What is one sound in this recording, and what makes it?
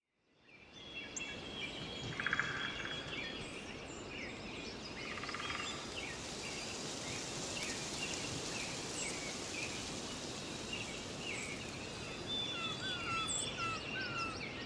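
Birds chirp and twitter outdoors.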